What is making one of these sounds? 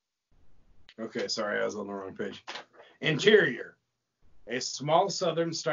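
A man reads aloud with animation over an online call.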